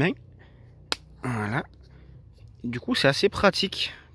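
A plastic lid clicks open.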